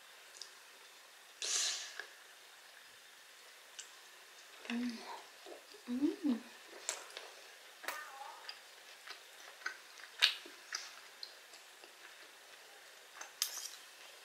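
Metal cutlery clinks and scrapes against a plate.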